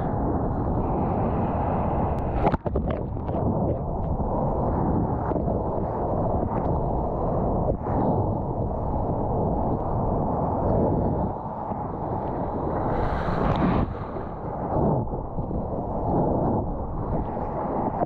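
Surf churns and roars loudly close by, heard from within the water.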